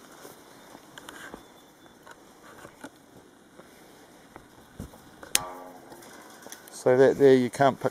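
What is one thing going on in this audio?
Metal fencing wire clicks and scrapes against a hand tool.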